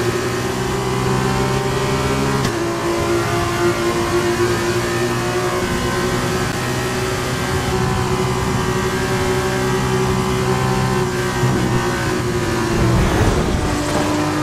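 Other racing car engines roar close by.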